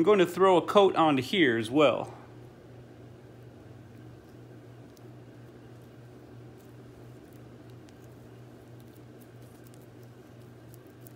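Metal parts clink and tap softly as hands handle them.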